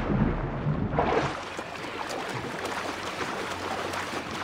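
Water sloshes and splashes with swimming strokes.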